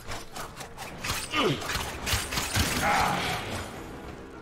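A blade slashes and strikes with sharp hits.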